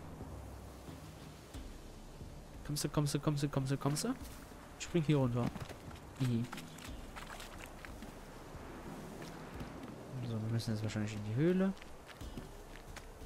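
Footsteps rustle through grass and undergrowth.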